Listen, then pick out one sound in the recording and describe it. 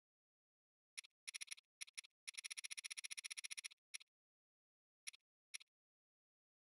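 Soft menu ticks click in quick succession.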